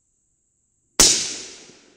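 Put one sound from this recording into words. A rifle fires a single loud shot that echoes outdoors and slowly fades.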